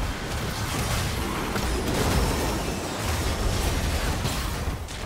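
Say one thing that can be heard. Magic spells blast and crackle in a video game battle.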